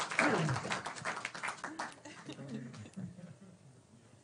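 A group of people laugh and chatter in a room.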